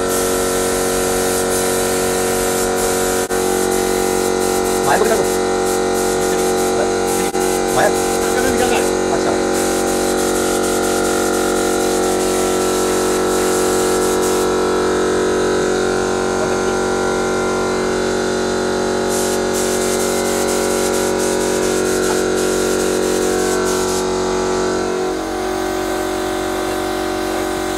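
A spray gun hisses as it sprays paint.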